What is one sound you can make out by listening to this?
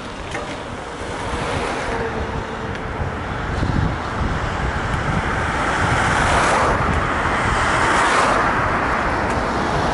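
Wind rushes past loudly as the bicycle speeds down a road.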